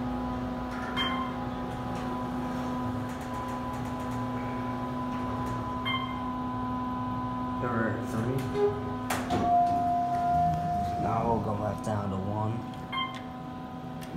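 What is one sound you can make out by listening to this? An elevator chime dings briefly.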